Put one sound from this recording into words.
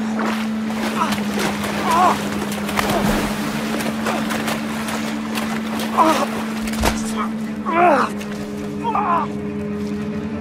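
A young man cries out loudly.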